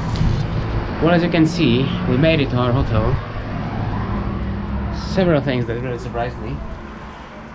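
A young man speaks casually and close by.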